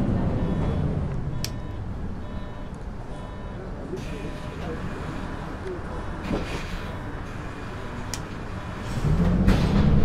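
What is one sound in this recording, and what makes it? A diesel city bus engine idles.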